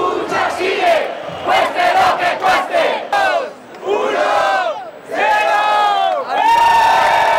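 A young man chants loudly, shouting with a crowd.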